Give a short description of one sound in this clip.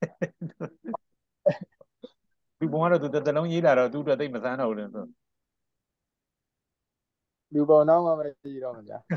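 A man talks steadily into a microphone.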